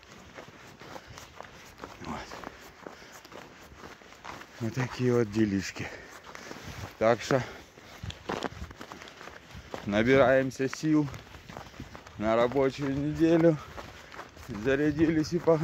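A dog's paws crunch softly on snow.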